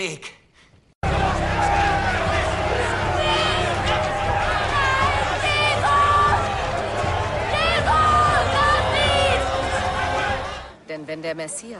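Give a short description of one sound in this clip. A crowd shouts and clamours loudly.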